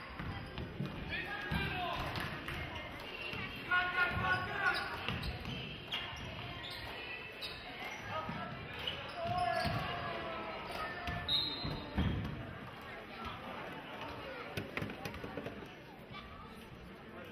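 Sneakers squeak on a gym floor.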